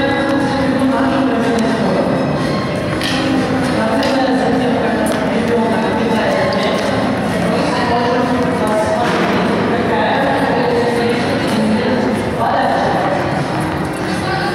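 Young children chatter and call out in an echoing indoor hall.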